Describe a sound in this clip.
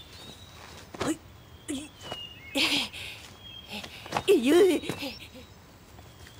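A young woman speaks in alarm and cries out.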